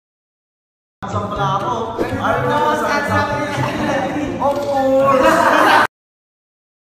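Several young men talk and laugh excitedly together.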